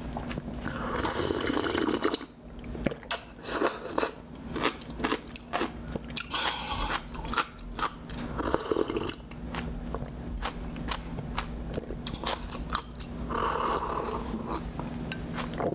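A young woman slurps and gulps a drink close to a microphone.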